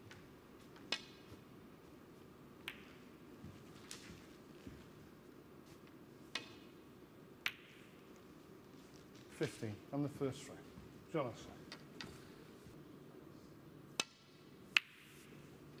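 Snooker balls click sharply against each other on a table.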